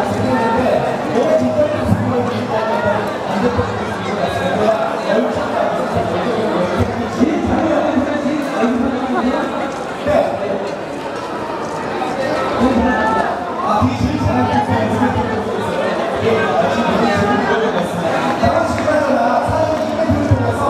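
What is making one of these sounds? A man speaks through a microphone and loudspeaker with animation.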